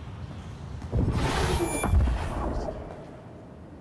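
A hand slides down a metal handrail with a loud rushing scrape.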